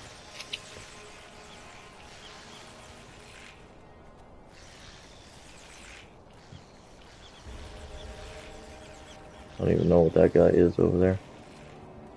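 Footsteps crunch on dry leaves and stone.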